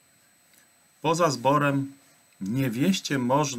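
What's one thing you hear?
A middle-aged man speaks calmly into a microphone close by, as if on an online call.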